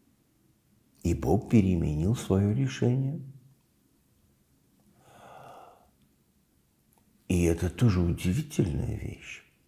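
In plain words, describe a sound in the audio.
An elderly man speaks calmly and slowly, close by, with pauses.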